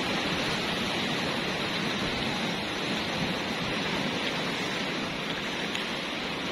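Waves wash steadily onto a rocky shore.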